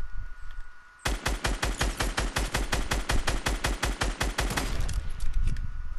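Rapid gunfire rattles in a long burst.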